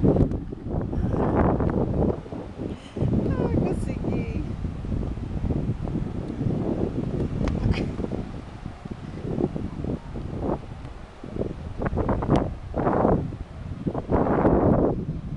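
Wind blusters loudly over the microphone outdoors.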